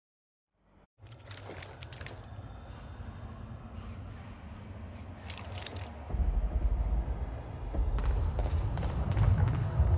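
Footsteps walk and then run on a hard floor.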